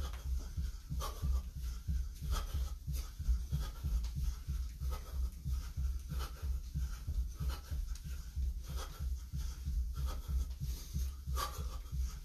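Feet thump rhythmically on a floor as a man jumps in place.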